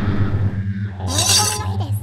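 A man shouts with excitement.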